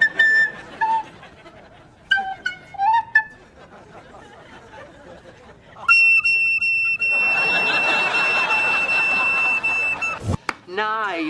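A recorder plays a thin, high melody up close.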